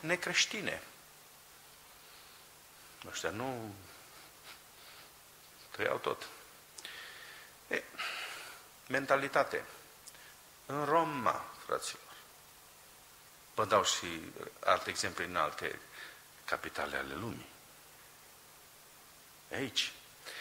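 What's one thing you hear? A middle-aged man speaks with emphasis into a microphone, in bursts with pauses.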